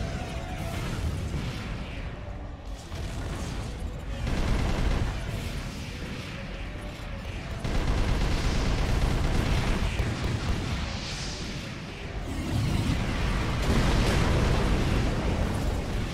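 Jet thrusters roar steadily.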